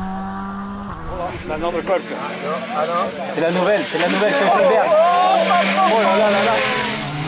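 Another rally car's engine roars and revs as the car approaches and passes.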